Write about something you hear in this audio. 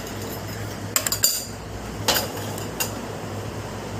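A metal spoon clinks against a metal bowl.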